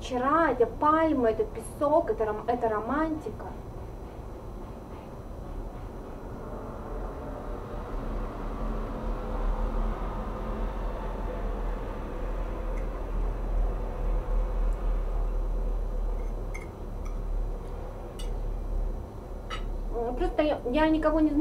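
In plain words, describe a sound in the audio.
A woman sings in a high voice close by.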